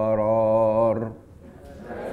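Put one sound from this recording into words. A middle-aged man chants in a drawn-out singing voice through a microphone.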